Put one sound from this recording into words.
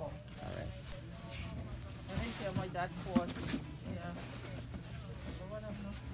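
Stiff paper rustles as a hand lifts dried fish from a box.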